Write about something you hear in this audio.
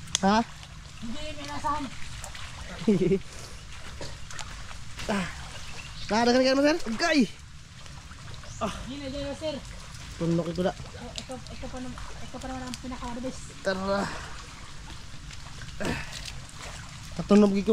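Water sloshes and splashes as a person wades through shallow flood water.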